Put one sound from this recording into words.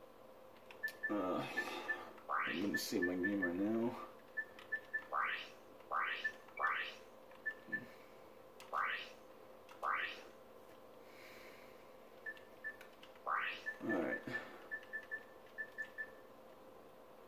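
Short electronic menu beeps blip repeatedly as options are selected.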